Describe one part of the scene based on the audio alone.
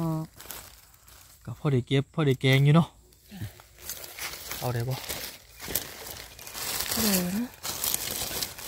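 Hands rustle through dry leaves.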